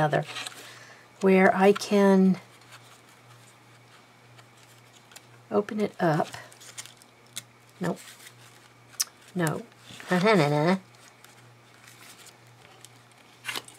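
Paper pages turn and rustle softly.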